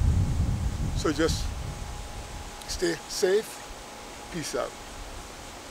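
A middle-aged man speaks calmly and close to the microphone in short phrases.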